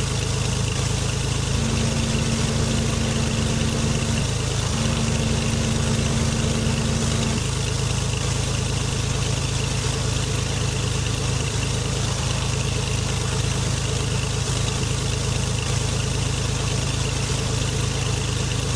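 A small propeller plane's engine drones steadily as the plane rolls along.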